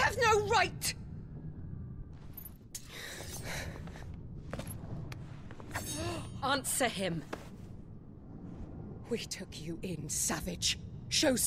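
A woman speaks coldly and angrily, close by.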